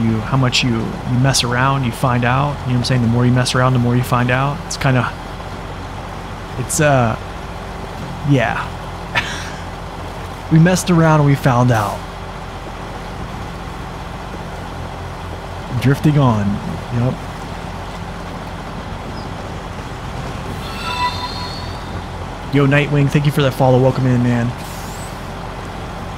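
A heavy truck engine drones steadily.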